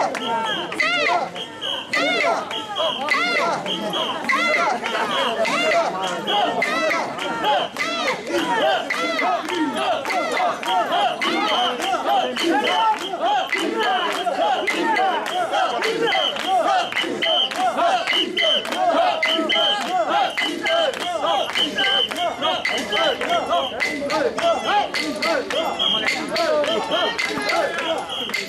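A crowd of men chant rhythmically together outdoors.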